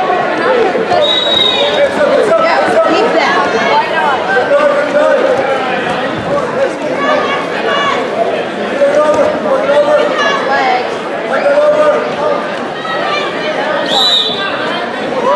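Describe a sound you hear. A referee blows a short whistle.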